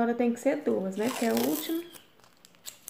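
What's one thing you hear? Tape is pulled off a roll with a ripping sound.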